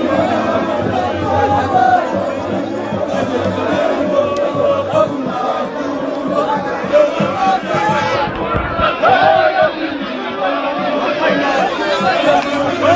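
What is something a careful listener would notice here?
A crowd of men and women sing and chant together outdoors.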